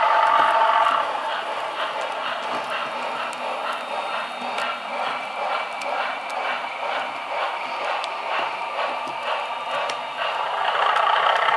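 Model train wheels click rhythmically over rail joints.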